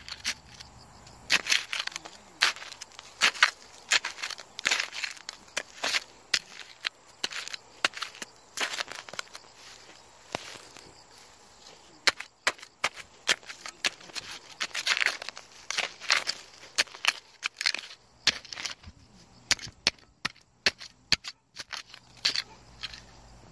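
A small trowel scrapes and digs into gritty soil.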